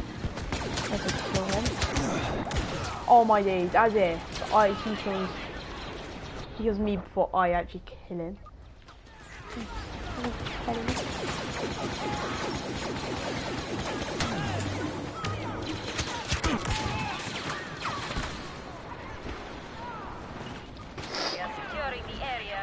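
Blaster rifles fire in quick bursts of sharp zapping shots.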